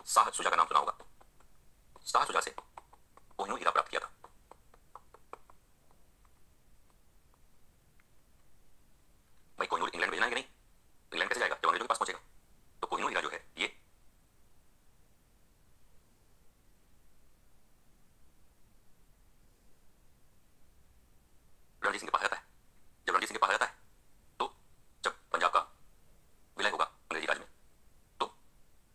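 A man lectures in bursts, heard through a small loudspeaker.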